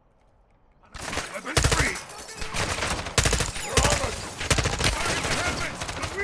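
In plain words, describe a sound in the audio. Rifle shots crack in rapid bursts.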